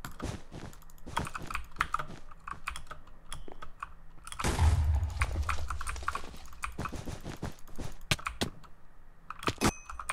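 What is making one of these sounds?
Blocks click softly as they are placed in quick succession.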